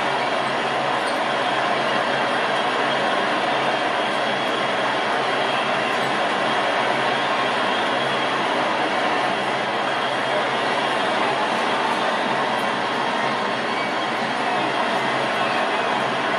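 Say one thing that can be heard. A large crowd murmurs and roars steadily in an arena.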